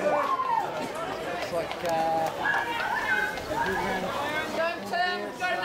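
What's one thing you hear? A crowd of spectators cheers and shouts nearby.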